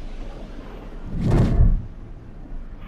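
A figure falls with a deep rushing whoosh.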